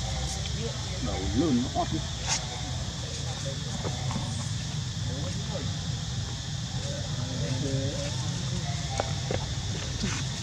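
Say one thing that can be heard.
A baby monkey squeaks and chirps shrilly, close by.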